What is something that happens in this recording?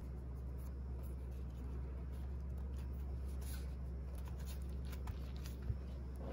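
A soft flatbread rustles softly as hands fold and press it.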